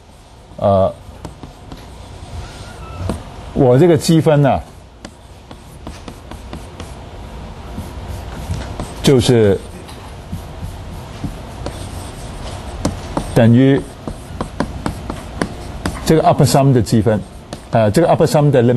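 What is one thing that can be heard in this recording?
A man speaks in short bursts, lecturing calmly.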